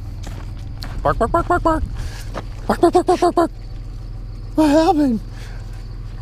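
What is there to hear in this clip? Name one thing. A dog barks excitedly close by.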